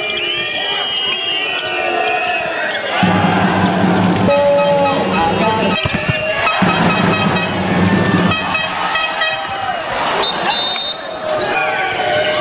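A crowd cheers and chants loudly in a large echoing hall.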